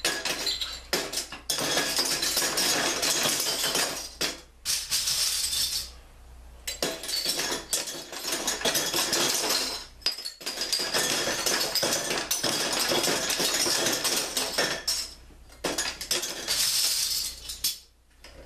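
Metal bottle caps clatter and rattle as they tumble down onto a pile.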